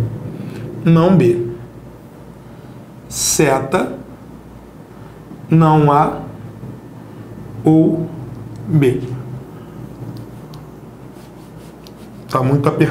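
A man speaks in short bursts, explaining calmly.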